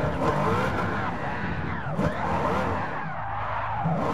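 Tyres screech while the car spins.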